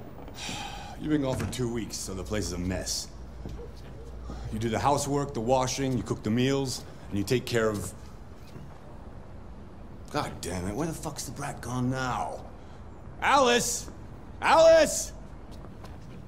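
A man speaks gruffly and angrily nearby.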